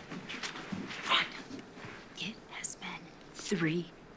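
A young woman answers in a raised voice.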